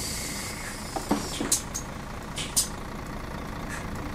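Bus doors thump and hiss shut.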